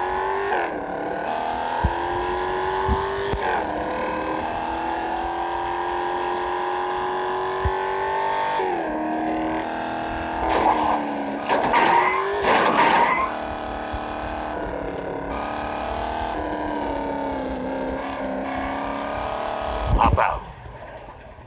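A car engine hums and revs up and down as the car speeds along.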